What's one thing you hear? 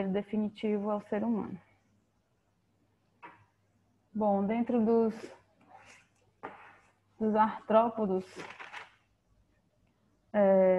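An elderly woman speaks calmly through an online call microphone, in short phrases with pauses.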